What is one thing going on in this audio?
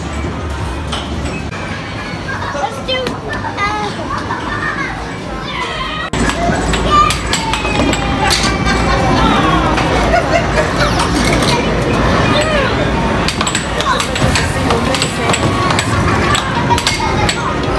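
Arcade machines beep and chime all around.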